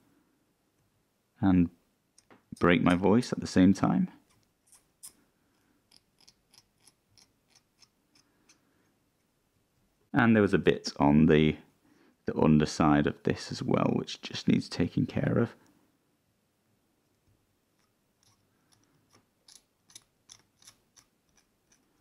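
A small knife blade scrapes lightly over hard plastic in short strokes.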